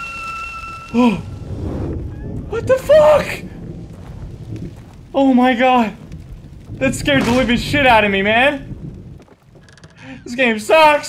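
A young man talks with animation into a close microphone, now and then in loud, drawn-out exclamations.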